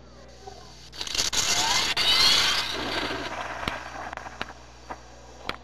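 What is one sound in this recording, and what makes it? Hoverboards whoosh and roar past at speed.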